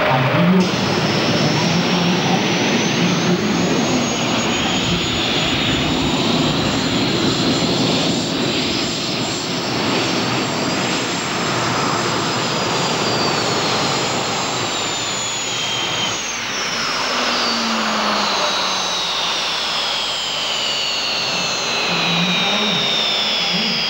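A pulling tractor's engines whine with a high rising and falling pitch.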